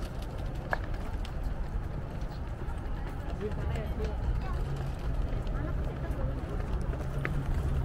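A wheeled suitcase rolls over paving stones.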